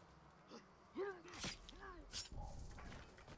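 Blades clash and strike in quick hits.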